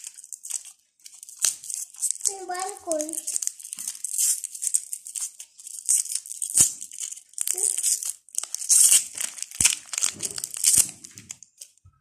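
Crinkly plastic candy wrappers rustle and crackle as hands unwrap a lollipop.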